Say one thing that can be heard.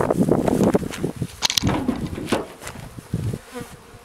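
A wooden lid thumps down onto a beehive.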